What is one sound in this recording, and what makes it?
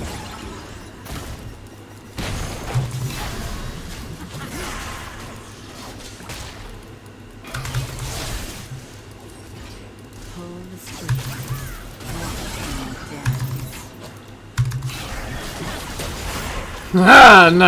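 Game sound effects of spells and combat play.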